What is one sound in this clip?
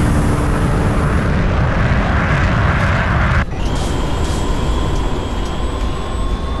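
Jet engines roar loudly and steadily.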